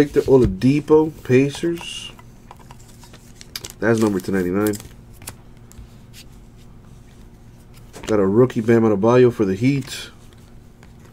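Trading cards rustle and flick softly between hands.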